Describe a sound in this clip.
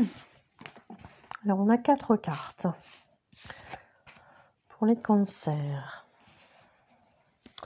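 Playing cards slide and tap softly on a cloth-covered table.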